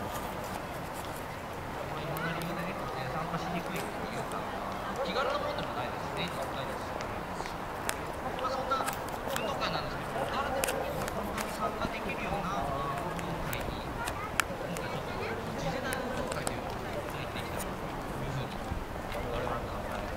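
A crowd of people chatters outdoors, with many voices mixing.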